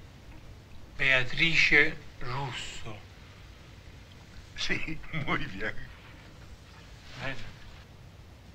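A man speaks softly and warmly, close by.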